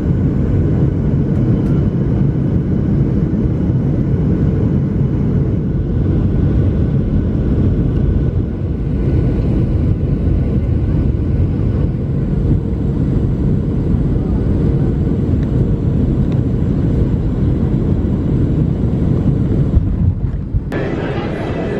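A jet engine roars steadily from inside an airliner cabin.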